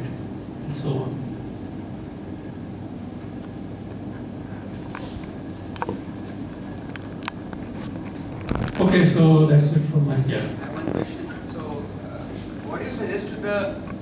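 A man speaks through a microphone and loudspeakers in an echoing room, calmly presenting.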